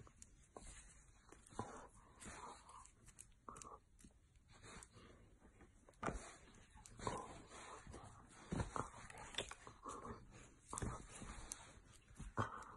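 Bedding rustles as a dog rolls and kicks.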